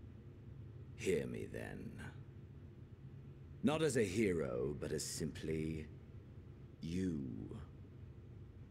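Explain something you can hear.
A man speaks slowly and calmly.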